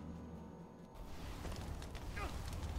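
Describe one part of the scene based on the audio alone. A burst of fire roars and whooshes.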